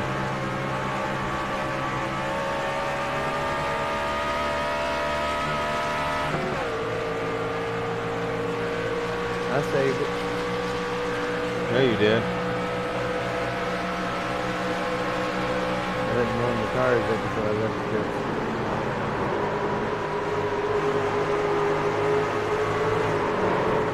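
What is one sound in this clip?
A racing truck engine drones steadily at high speed, shifting pitch as it changes gear.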